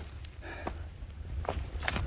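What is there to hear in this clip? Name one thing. Footsteps scuff over rock and loose stones.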